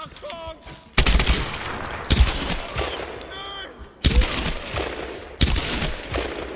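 Gunshots ring out loudly, several times, with a short echo.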